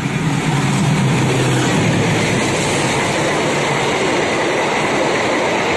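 Train wheels clatter and roar on the rails close by.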